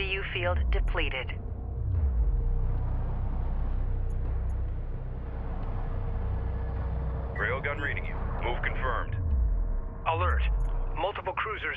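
Heavy engines rumble low and steadily.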